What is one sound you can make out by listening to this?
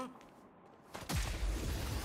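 A blade swishes through the air with a loud whoosh.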